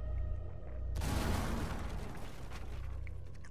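An explosion blasts through a wooden barricade, splintering boards.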